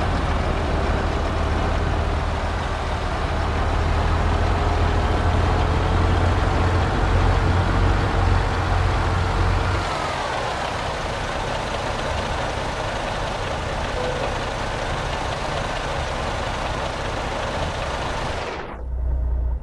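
A truck engine rumbles low and steady, then quietens.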